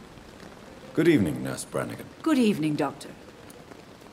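A man speaks a calm greeting at close range.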